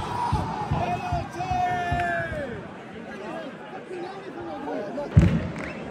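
Men in the crowd nearby shout.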